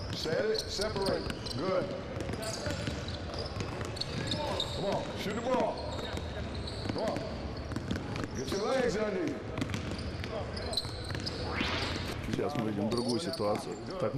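A man speaks calmly and steadily.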